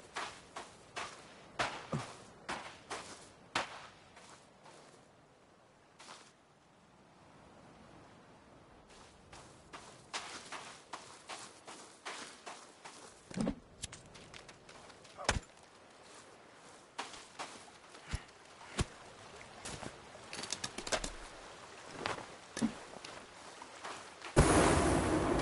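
Footsteps crunch on snow at a steady pace.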